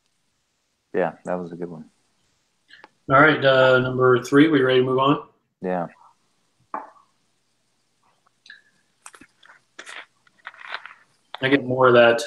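A man talks calmly over an online call.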